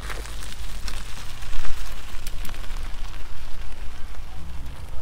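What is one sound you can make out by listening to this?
Bicycle tyres crunch on gravel and fade into the distance.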